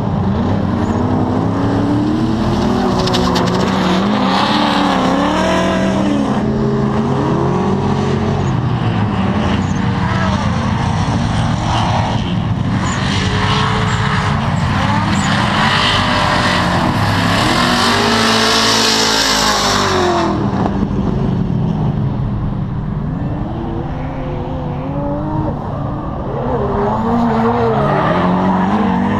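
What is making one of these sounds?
Tyres squeal against the tarmac.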